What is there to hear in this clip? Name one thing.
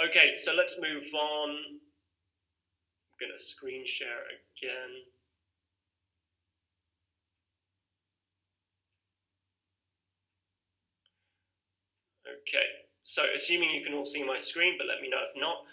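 A young man speaks calmly and close to the microphone, with long pauses.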